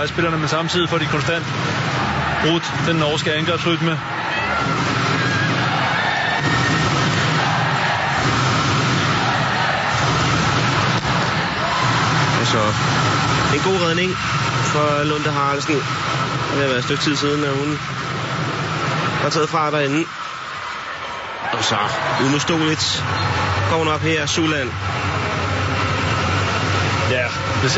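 A large crowd roars and cheers in an echoing indoor arena.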